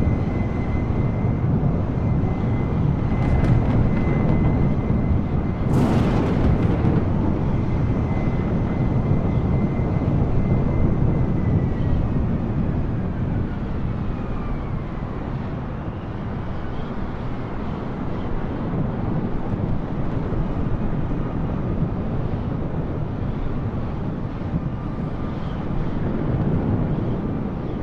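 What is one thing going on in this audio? Jet engines roar steadily and up close.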